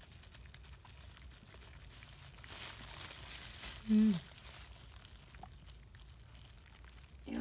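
A plastic glove crinkles and rustles softly.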